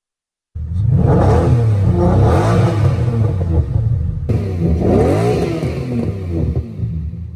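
A sports car engine roars loudly, revving up and down repeatedly.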